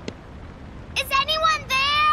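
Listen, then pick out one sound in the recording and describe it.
A young boy calls out loudly, as if asking.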